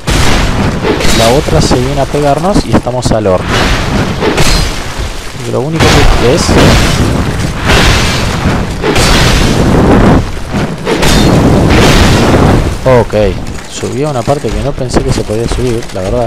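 Heavy blows and metal clanks ring out in a fight.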